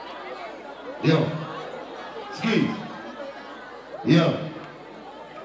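A crowd shouts out in loud bursts.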